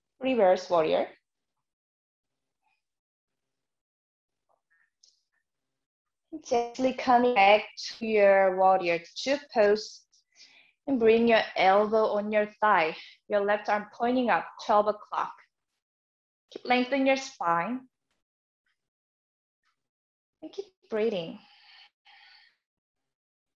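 A young woman speaks calmly and clearly into a close microphone, giving instructions with pauses.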